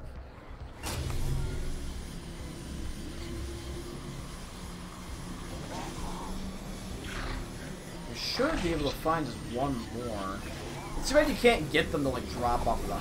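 A hoverboard hums steadily.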